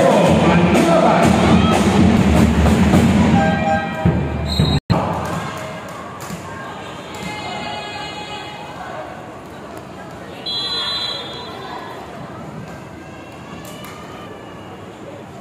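A crowd cheers loudly in a large echoing arena.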